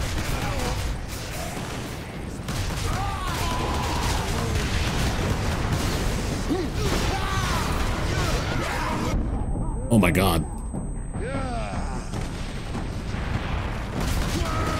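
Creatures screech and snarl.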